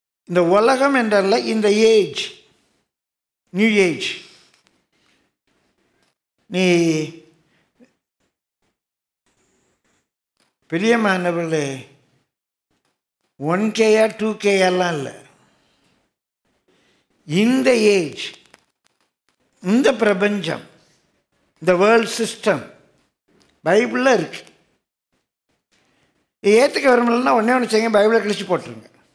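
An elderly man speaks slowly and deliberately through a headset microphone, with long pauses between phrases.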